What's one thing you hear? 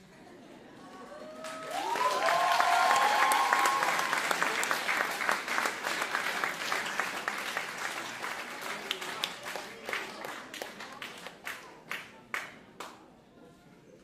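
An audience claps and cheers loudly.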